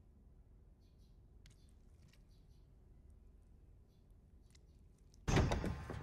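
A piano plays a few soft notes.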